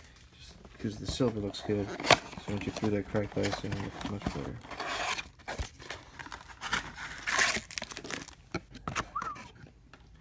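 Hands handle a cardboard box with soft knocks and scrapes.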